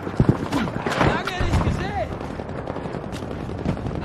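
A large explosion booms nearby.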